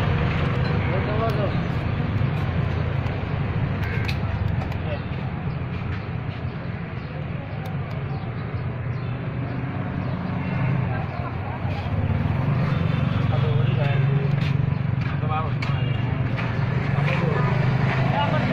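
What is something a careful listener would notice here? Plastic and metal parts clack as hands fit them together.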